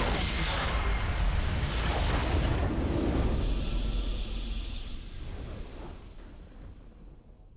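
A loud burst of game battle sounds and a victory fanfare plays, then fades away.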